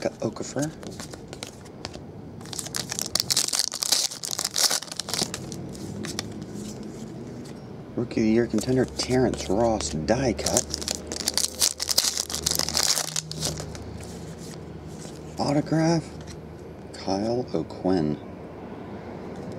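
Trading cards slide and flick against each other as they are handled.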